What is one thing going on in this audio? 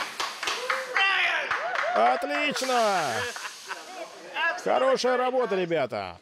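An older man laughs heartily nearby.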